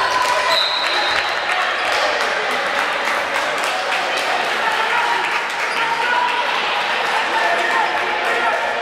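A crowd murmurs and calls out in an echoing indoor hall.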